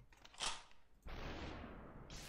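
A pistol fires a single sharp shot.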